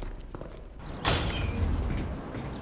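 A door bangs open to the outside.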